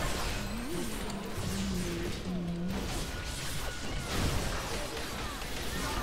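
Video game spell effects crackle and clash.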